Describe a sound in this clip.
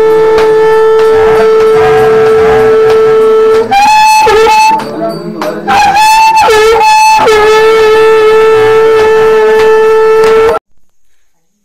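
A conch shell blows a loud, long, steady note that wavers briefly.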